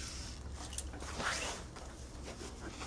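Fabric rustles as it is lifted and folded.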